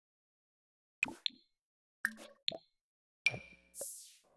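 Interface clicks sound as menus open and close.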